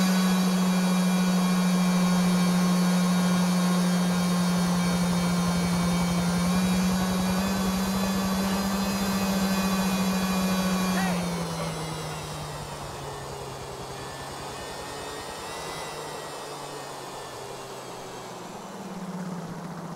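A motorcycle engine hums steadily, then drops in pitch as it slows.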